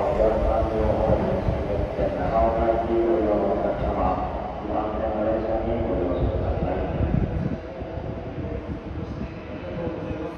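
An electric express train pulls away from a station.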